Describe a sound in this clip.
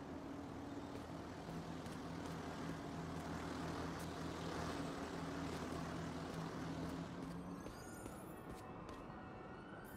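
Footsteps patter across a rooftop.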